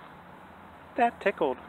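A man speaks close to the microphone with animation.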